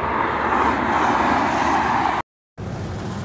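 Wind blows loudly outdoors.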